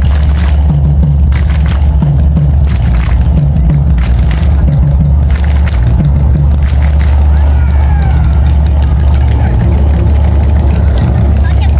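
Music with a steady beat plays loudly over loudspeakers.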